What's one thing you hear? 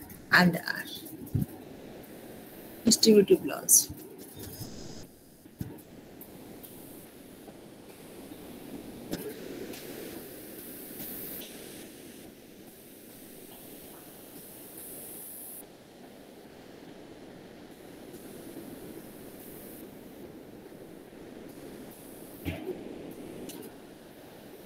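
A woman speaks briefly through an online call.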